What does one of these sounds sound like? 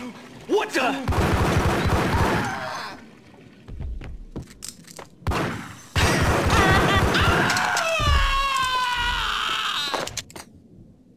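Pistols fire in rapid bursts.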